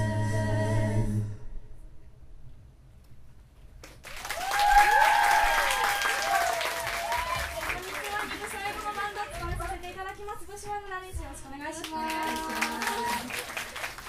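Young women sing together into microphones.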